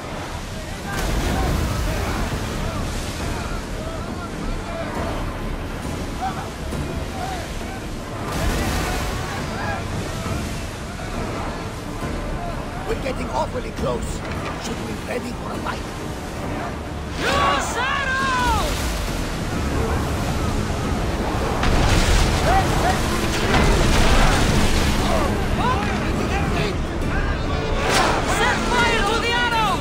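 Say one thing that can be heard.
Waves rush and splash against a ship's hull.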